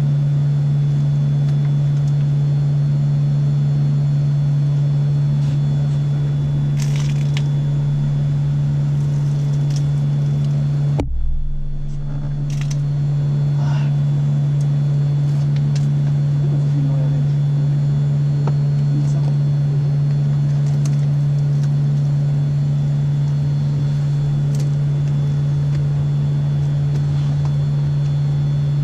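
A car's charging equipment hums steadily.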